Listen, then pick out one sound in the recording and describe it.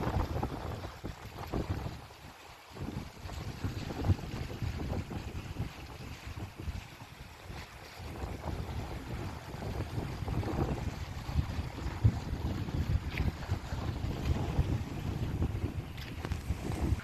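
Wind blows hard outdoors, buffeting and rumbling.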